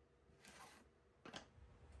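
Pieces of wood knock lightly together.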